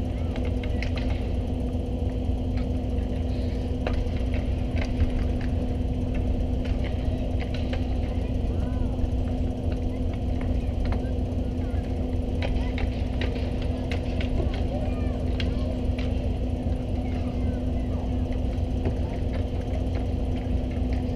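Ice hockey skates scrape and carve across ice.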